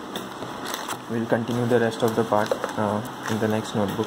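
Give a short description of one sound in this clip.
Paper rustles as a notebook is handled.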